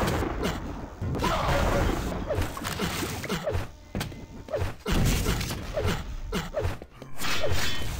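Rockets fire and explode with dull booms.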